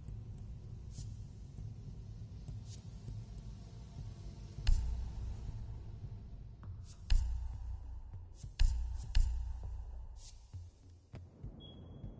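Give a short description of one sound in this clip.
Menu buttons click now and then.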